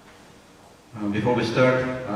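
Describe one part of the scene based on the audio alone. An elderly man speaks into a microphone in a large echoing hall.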